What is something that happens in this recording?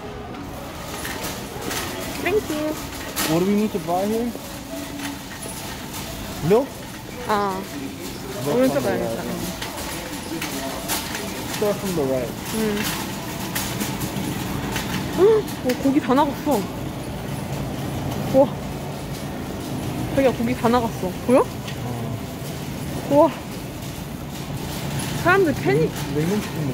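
A shopping cart rolls and rattles over a tiled floor.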